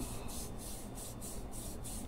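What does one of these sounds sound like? Hands rub lotion together softly.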